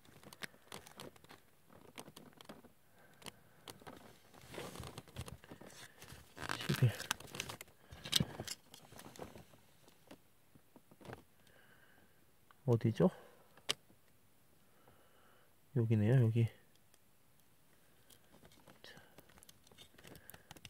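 Small plastic toy pieces click and tap against each other.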